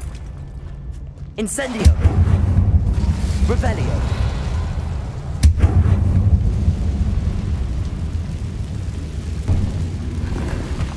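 Flames crackle in a fire bowl.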